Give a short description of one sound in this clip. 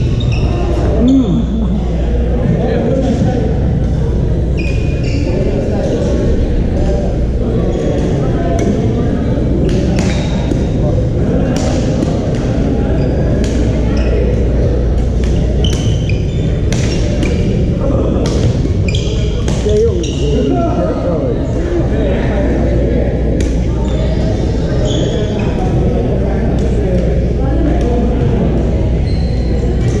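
Paddles strike a ball with sharp pops, over and over, echoing in a large hall.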